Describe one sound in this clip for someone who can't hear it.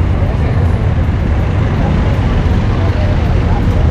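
A jeepney engine rumbles as the jeepney drives past.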